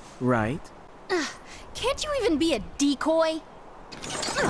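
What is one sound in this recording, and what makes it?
A young woman speaks sharply, close by.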